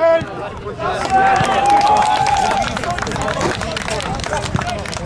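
A group of young men cheer and shout nearby outdoors.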